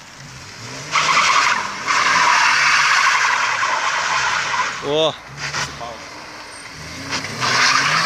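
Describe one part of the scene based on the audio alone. Tyres squeal loudly on asphalt as a car drifts.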